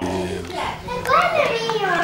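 A young girl talks with animation close by.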